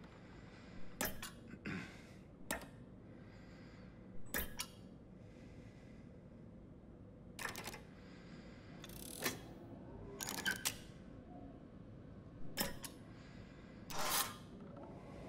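A jukebox mechanism clicks and clunks as a record arm moves.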